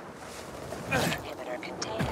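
Feet land with a thud.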